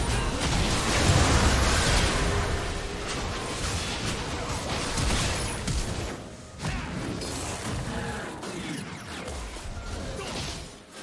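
Game spell effects crackle and blast during a fight.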